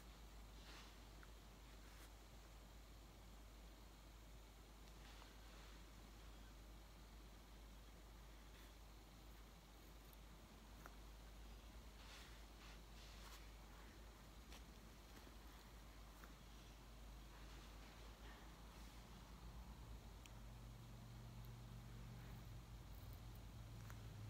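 Small scissors snip at a cat's claws with quiet clicks.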